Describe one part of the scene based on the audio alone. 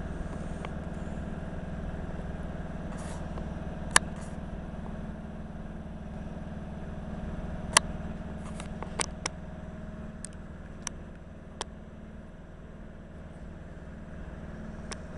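An electric train rumbles along the tracks, moving slowly away.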